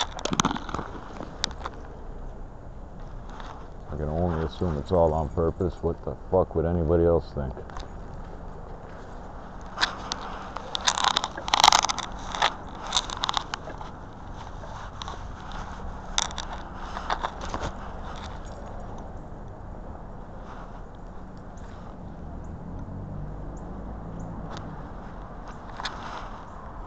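Leaves rustle and crackle close by.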